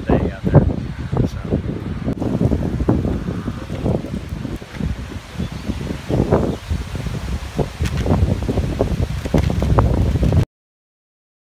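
Strong wind gusts and buffets the microphone outdoors.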